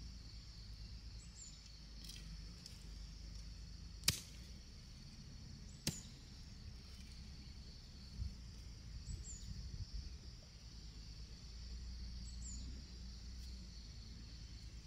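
Dry leaves and grass rustle under a woman's hands.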